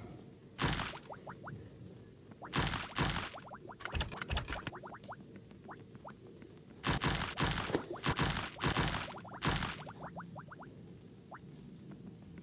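Game coins chime in quick rising pings.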